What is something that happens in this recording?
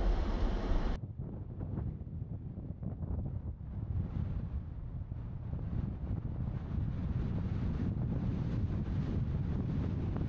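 Wind rushes and buffets past as a car drives along a road.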